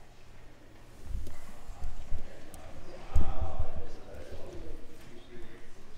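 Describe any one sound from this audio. A crowd of men and women chat in a large echoing hall.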